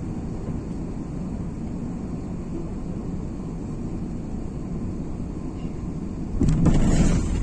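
Jet engines hum steadily, heard from inside an airliner cabin.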